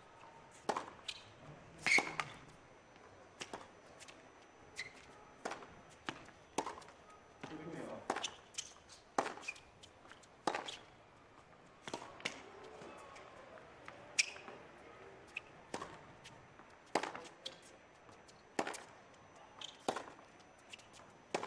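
Tennis players' shoes squeak on the court.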